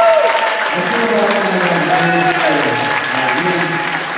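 A crowd claps along.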